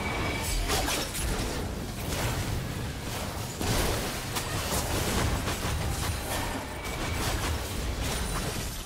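Game spell blasts and sword hits crackle and thump in a fast battle.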